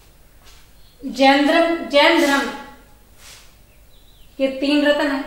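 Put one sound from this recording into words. A young woman speaks clearly nearby in an echoing room.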